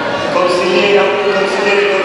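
A young woman shouts loudly close by.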